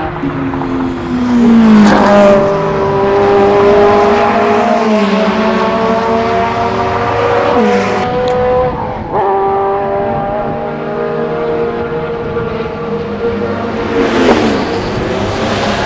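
A sports car engine roars, revving up and shifting through gears as the car speeds by.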